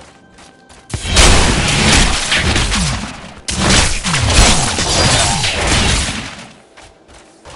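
Creatures screech during a fight.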